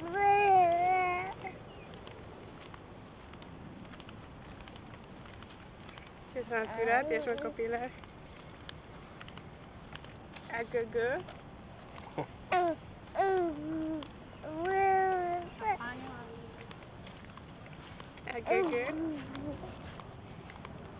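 A baby whimpers and coos close by.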